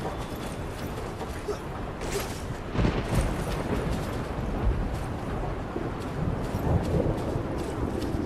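Footsteps run over gravel.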